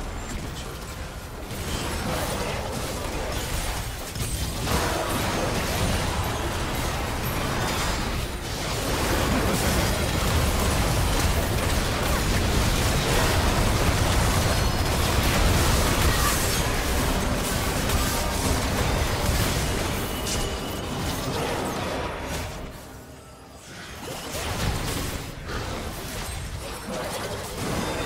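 Spell blasts and clashing weapons sound in a video game fight.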